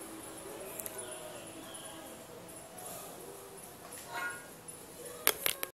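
Game music plays softly through a television speaker.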